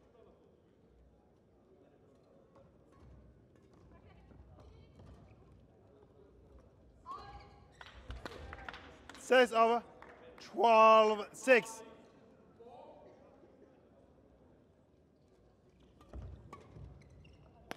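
Rackets strike a shuttlecock with sharp pops.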